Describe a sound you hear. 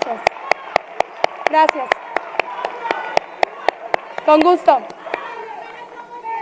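A crowd claps in steady unison.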